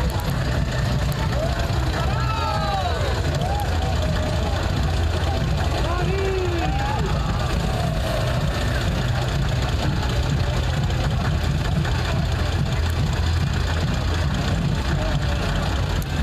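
A truck engine rumbles low and steady nearby.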